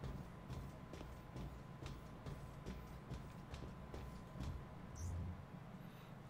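Metal footsteps clank at a steady pace.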